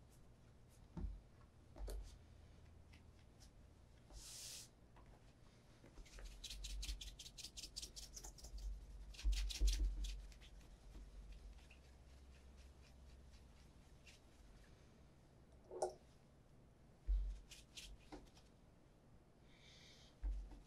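A shoe knocks softly on a wooden table.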